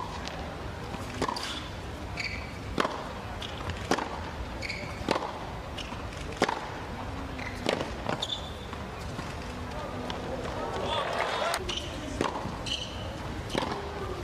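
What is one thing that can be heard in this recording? A tennis ball is struck back and forth with sharp pops in a large echoing arena.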